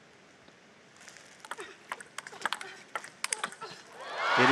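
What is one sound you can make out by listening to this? A table tennis ball bounces on the table.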